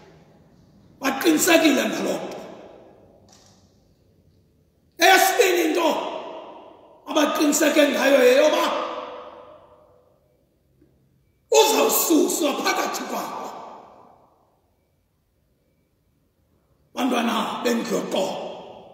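A man preaches forcefully into a microphone in bursts, his voice echoing through a large hall.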